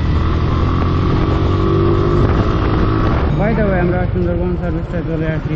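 Wind buffets past a moving motorcycle.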